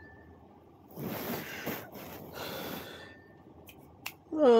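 A young woman coughs into her hand.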